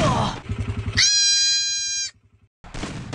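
A goat screams with a loud, drawn-out bleat.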